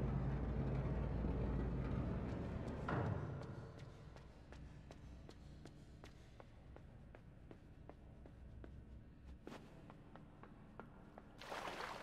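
Quick light footsteps patter on a hard floor.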